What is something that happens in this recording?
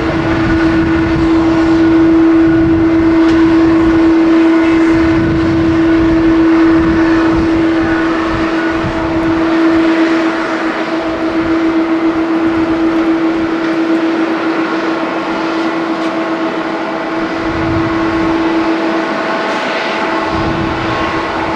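A jet airliner's engines whine steadily as it taxis nearby.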